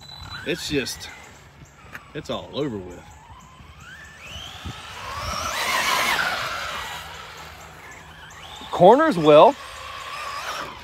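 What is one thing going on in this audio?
A small electric motor whines, rising and falling in pitch as a toy car speeds over dirt.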